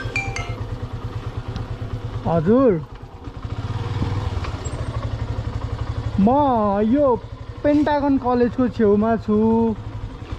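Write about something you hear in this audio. A motorcycle engine runs with a steady low putter.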